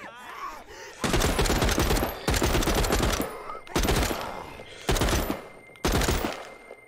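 A rifle fires loud bursts of rapid shots.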